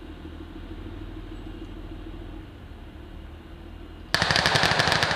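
An armoured vehicle's engine idles with a low rumble.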